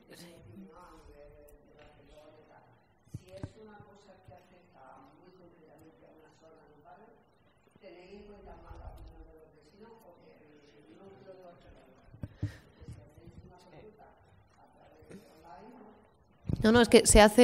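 A man reads aloud calmly into a microphone in an echoing hall.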